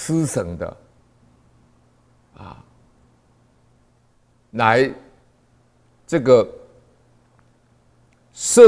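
An older man speaks calmly and slowly into a close microphone, with long pauses.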